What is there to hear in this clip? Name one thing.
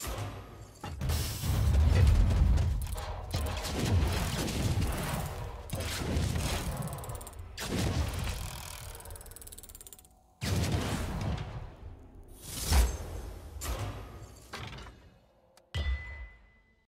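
Heavy chests rumble and thud open, one after another.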